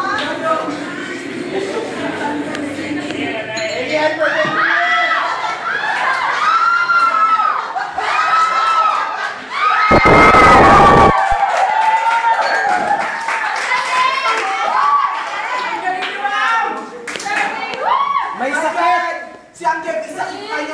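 Young women laugh and shriek loudly close by.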